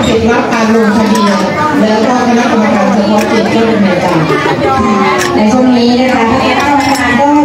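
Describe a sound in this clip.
A woman sings into a microphone, her voice loud through loudspeakers.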